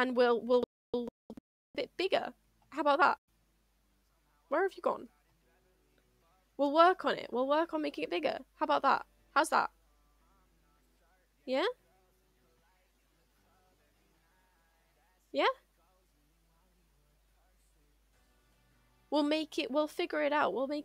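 A young woman talks with animation into a close microphone, in short bursts with pauses.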